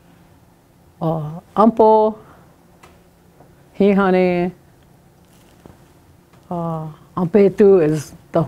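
An elderly woman speaks slowly and clearly nearby, with long pauses.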